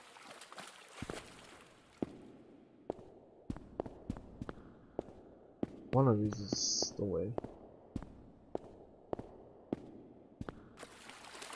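Footsteps tap steadily on a hard tiled floor in an echoing hall.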